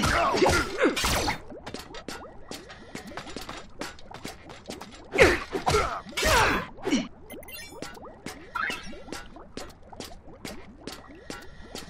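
Punches and blasts thud and crackle in a fight.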